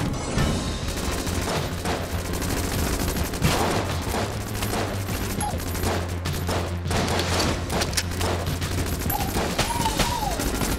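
Gunfire and explosions from a video game pop rapidly.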